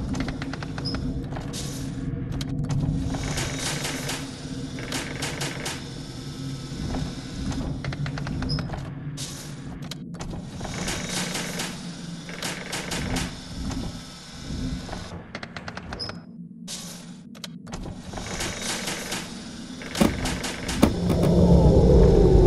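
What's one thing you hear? A robotic arm whirs and clanks as it moves.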